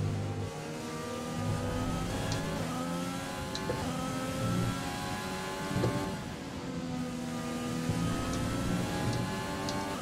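A racing car engine whines at high revs, rising in pitch and dropping with each gear change.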